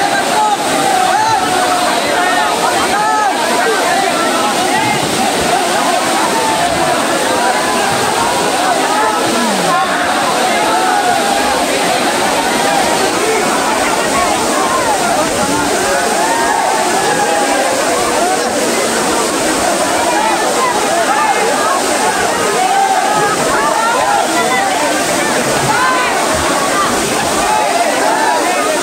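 Water splashes as people play in a pool.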